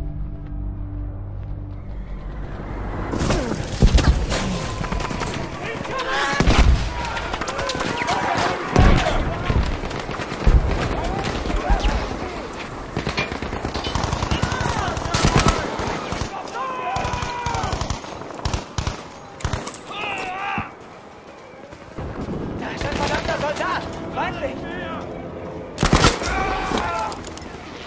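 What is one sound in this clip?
Gunfire crackles in bursts.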